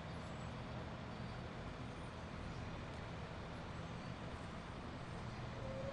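Heavy armoured vehicle engines rumble steadily.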